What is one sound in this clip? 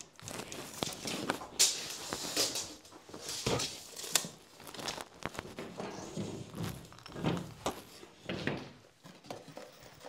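Drywall sheets scrape and rustle as they are handled.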